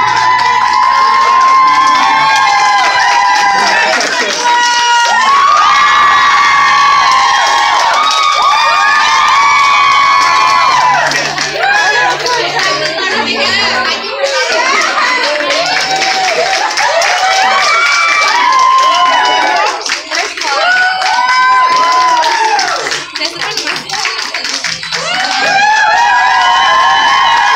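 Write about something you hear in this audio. A crowd of young women chants loudly and excitedly nearby.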